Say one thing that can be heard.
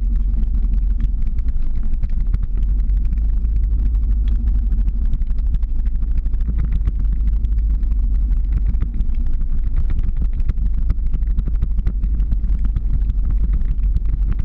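Skateboard wheels roll and rumble steadily on asphalt.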